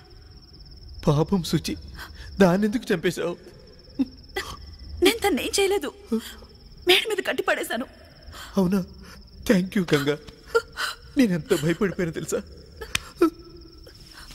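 A young man speaks pleadingly and with emotion, close by.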